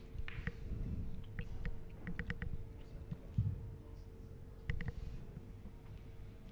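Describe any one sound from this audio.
Billiard balls knock together with hard clacks.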